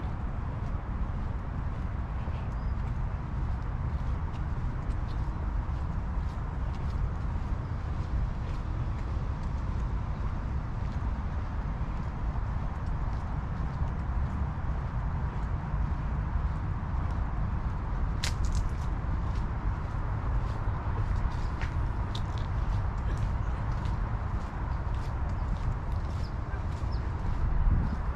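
Footsteps tap along a paved path.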